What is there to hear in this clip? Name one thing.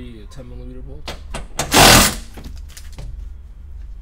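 A metal bar knocks and scrapes against metal.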